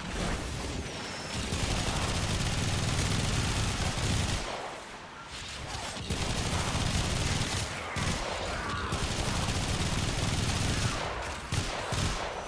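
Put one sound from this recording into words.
Energy weapons fire in rapid bursts with electric crackling.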